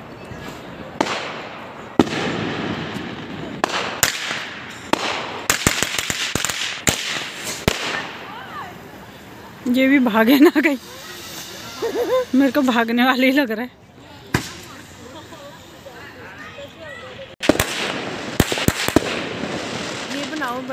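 Fireworks burst with loud bangs and crackle overhead.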